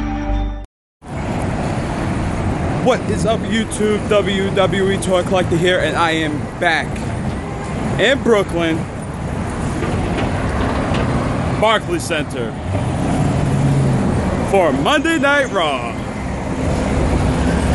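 Street traffic rumbles steadily in the background.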